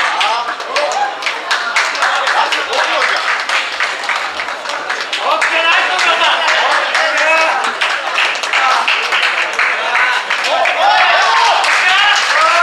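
A crowd claps hands rapidly.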